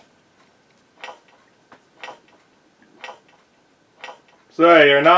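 A clock ticks slowly and loudly.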